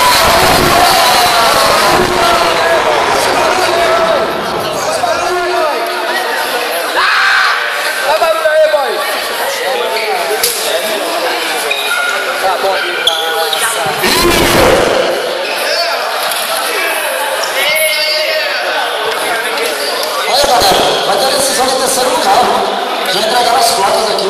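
A crowd of young people chatters and calls out loudly in an echoing hall.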